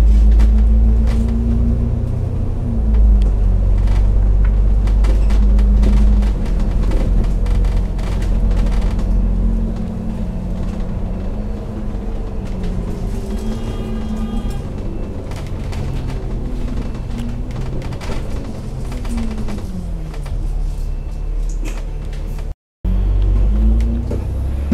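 Traffic passes on the road alongside.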